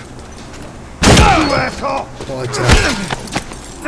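A heavy impact thuds.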